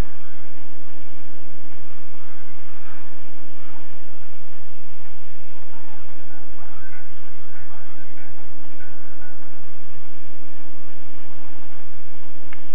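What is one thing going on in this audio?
Game music and sound effects play faintly from a handheld console's small speaker.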